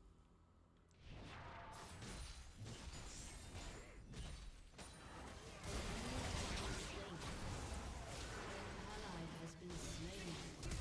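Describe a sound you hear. Game spell effects whoosh and clash during a fight.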